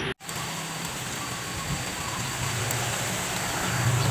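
Leafy stems snap as they are broken by hand.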